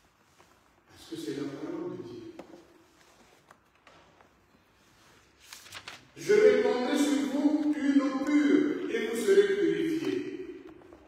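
A man speaks slowly and calmly into a microphone in a large echoing hall.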